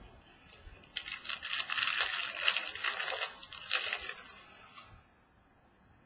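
Plastic crinkles and rustles as it is handled.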